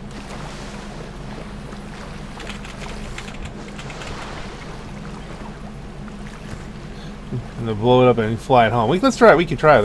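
A boat engine idles with a low, steady hum.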